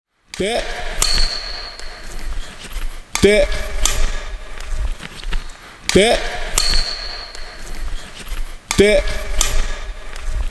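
A man speaks calmly into a close microphone in a large echoing hall.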